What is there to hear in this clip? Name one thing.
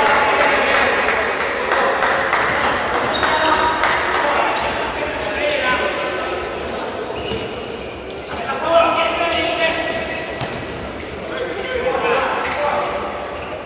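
A crowd of spectators shouts and chants in a large echoing hall.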